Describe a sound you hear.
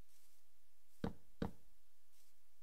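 A hollow block thuds twice as it is set down.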